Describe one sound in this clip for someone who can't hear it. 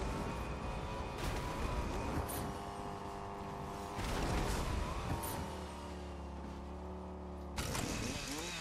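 A car engine hums steadily and changes pitch as it drives.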